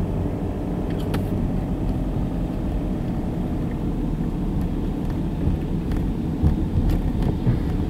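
A car engine hums low and steady as the car drives slowly.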